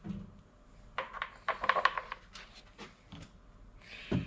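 Plastic parts knock and rattle as a hard plastic cover is lifted by hand.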